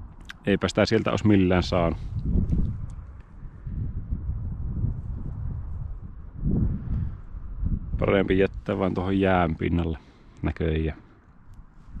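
A man speaks calmly, close to the microphone.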